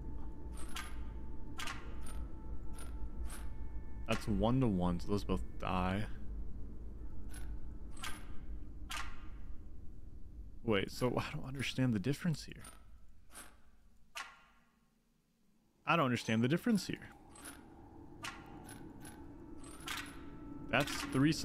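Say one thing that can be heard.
Short electronic clicks sound as puzzle tiles turn.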